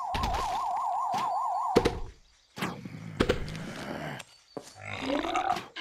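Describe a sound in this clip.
A plant fires peas with soft popping shots.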